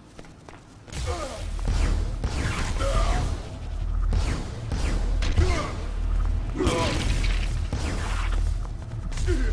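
Electric zaps crackle.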